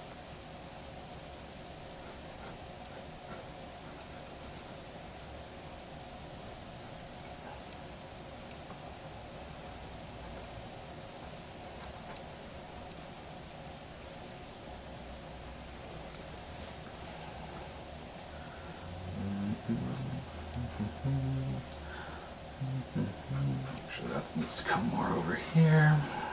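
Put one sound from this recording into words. A pencil scratches across paper close by.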